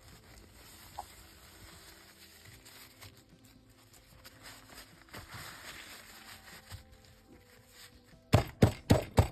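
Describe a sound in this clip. Cloth rustles as hands fold it.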